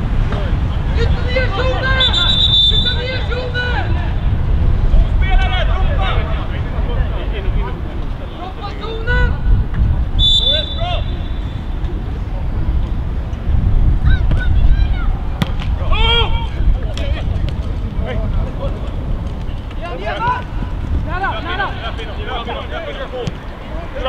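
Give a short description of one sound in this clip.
Players shout to each other across a pitch.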